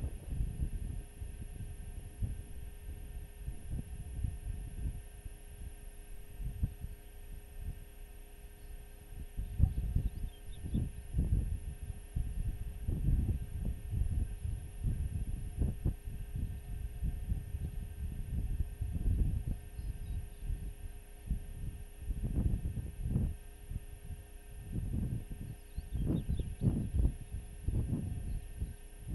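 Wind gusts and rumbles across open ground.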